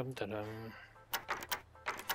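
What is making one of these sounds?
A lock pick clicks and scrapes inside a lock.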